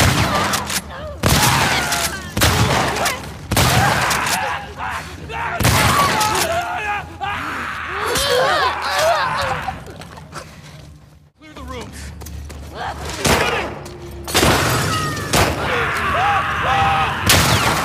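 Men shout and grunt in pain during a fight.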